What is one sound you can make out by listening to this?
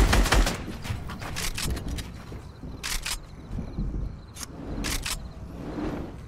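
Building pieces snap into place with quick thuds.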